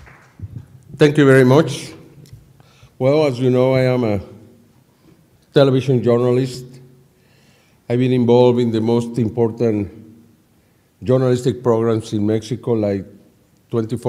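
An elderly man speaks slowly and deliberately through a microphone, with pauses.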